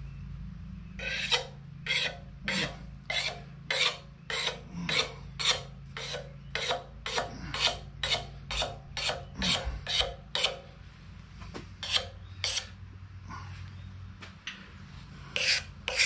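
A hand tool rasps along a wooden ax handle in rhythmic strokes.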